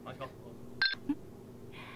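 Two small ceramic cups clink together.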